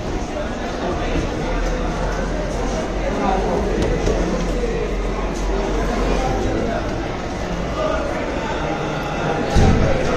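Voices of a crowd echo in a large hall.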